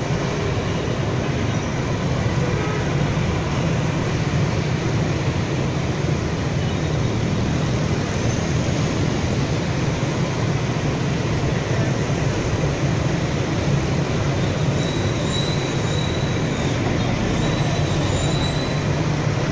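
Heavy traffic of motorbikes and cars rumbles and hums steadily along a wide road.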